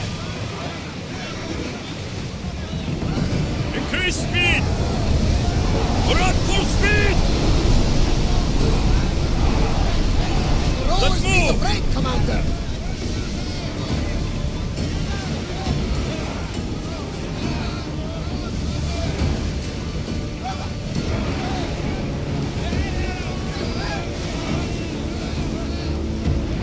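Water rushes and splashes against a ship's hull.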